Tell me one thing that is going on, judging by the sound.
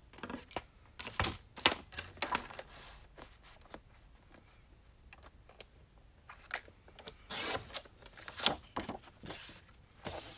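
Paper taps and knocks against a board.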